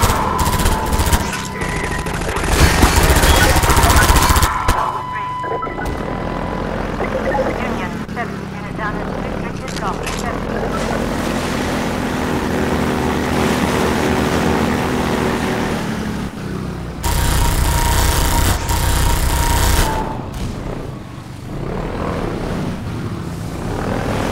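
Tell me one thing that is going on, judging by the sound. An airboat engine roars steadily.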